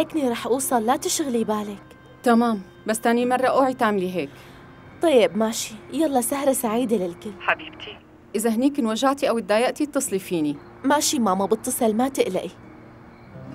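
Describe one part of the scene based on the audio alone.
A young woman talks cheerfully on a phone.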